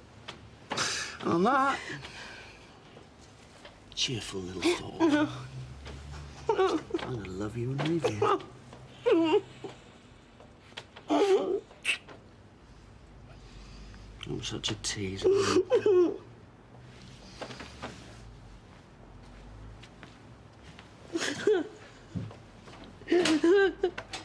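An older woman speaks quietly and emotionally, close by.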